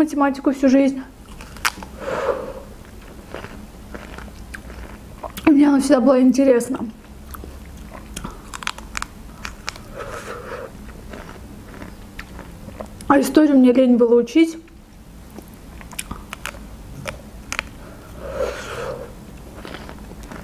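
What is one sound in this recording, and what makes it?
A young woman chews and bites juicy pomegranate seeds close to a microphone.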